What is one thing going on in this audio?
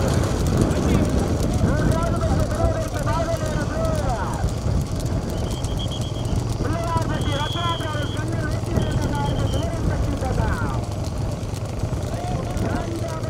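Cart wheels rumble along the road.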